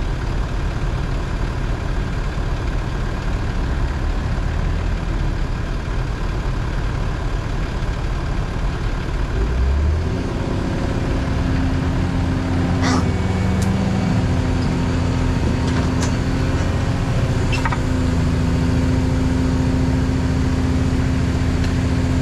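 An excavator engine rumbles steadily close by.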